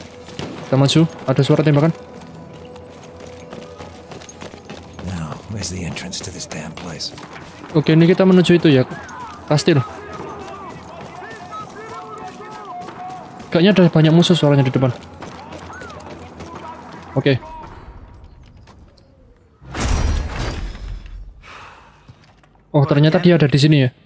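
A young man talks into a close microphone with animation, in short bursts.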